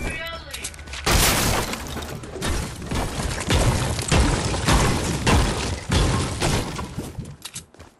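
Wooden planks knock into place as ramps are built.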